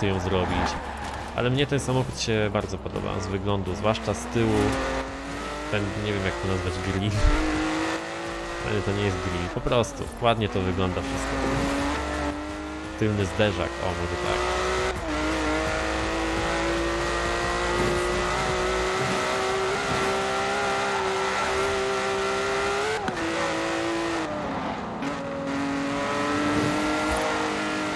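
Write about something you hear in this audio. A sports car engine roars and revs up through the gears.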